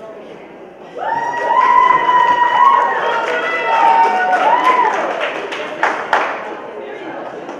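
A crowd of young people cheers and whoops in a large echoing hall.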